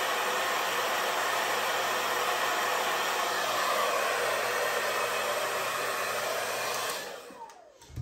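A hair dryer blows steadily and loudly, then switches off.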